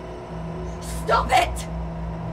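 A young woman speaks a few quick words aloud, close by.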